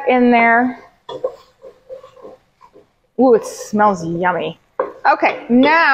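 A wooden spoon scrapes and stirs food in a pot.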